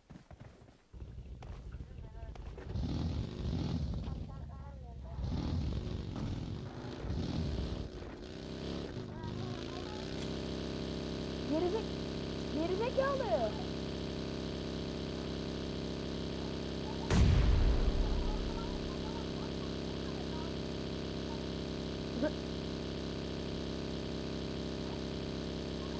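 A small buggy engine drones and revs as it drives.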